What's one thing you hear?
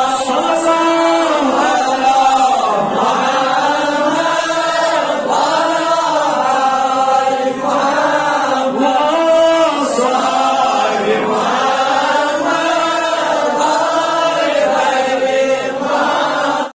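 A man chants melodically into a microphone, heard through a loudspeaker in an echoing room.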